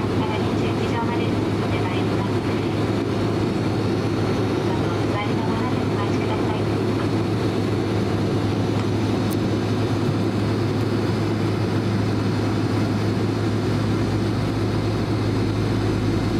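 An airplane's engines hum steadily from inside the cabin as it taxis.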